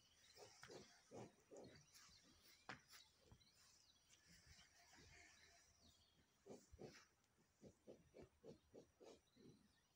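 A cow tears and munches grass.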